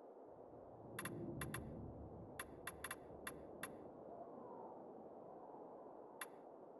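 Short, crisp menu clicks tick several times.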